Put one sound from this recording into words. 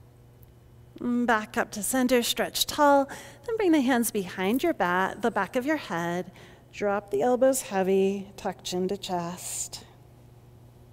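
A woman speaks calmly and clearly close to a microphone.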